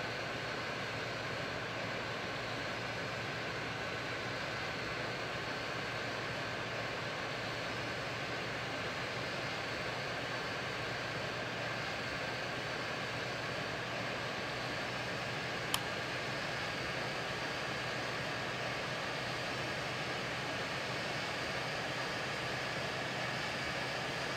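A jet's engines roar steadily in flight.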